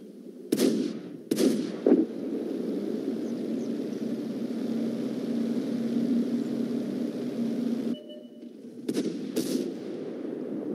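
Tank cannons fire in loud sharp blasts.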